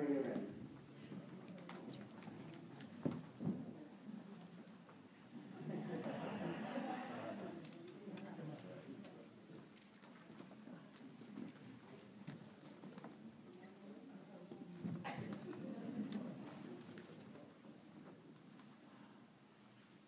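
A congregation of men murmurs and prays together in a large room.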